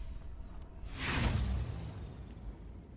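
A whooshing sound effect swoops downward in pitch.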